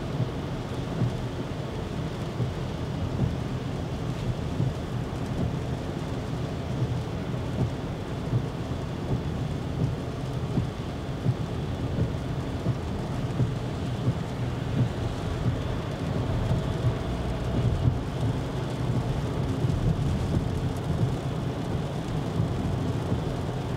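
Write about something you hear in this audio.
Windscreen wipers thump across the glass at regular beats.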